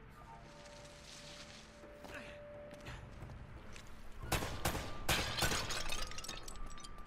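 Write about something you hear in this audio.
A loud explosion booms and rubble crashes down.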